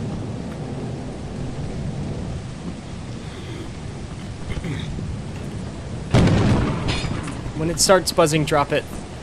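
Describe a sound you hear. Rain pours down.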